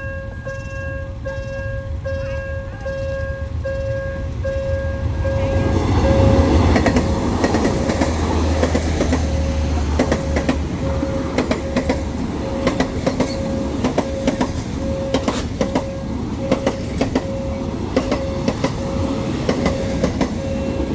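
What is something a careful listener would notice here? A railway crossing bell rings steadily in quick, even pulses.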